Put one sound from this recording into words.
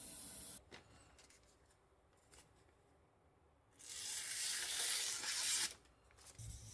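Paper rustles as it is pulled off a kitchen knife.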